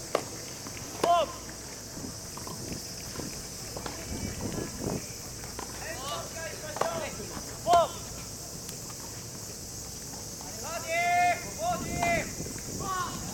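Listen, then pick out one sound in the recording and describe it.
Young men shout out across a tennis court in the distance.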